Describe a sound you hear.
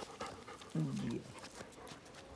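A small dog whines and yelps up close.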